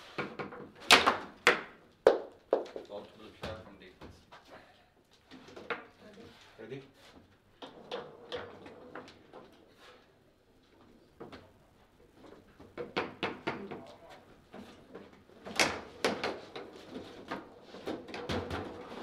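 Foosball rods clack and knock sharply.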